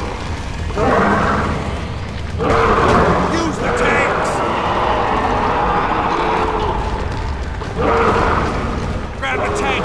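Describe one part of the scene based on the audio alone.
A rifle fires loud shots.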